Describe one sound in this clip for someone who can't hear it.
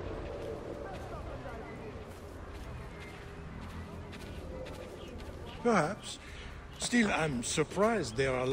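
Footsteps crunch softly on grass and dirt.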